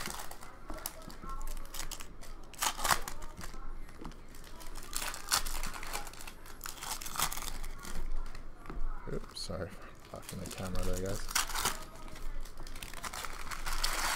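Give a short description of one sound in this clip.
Plastic card wrappers crinkle and tear as they are opened.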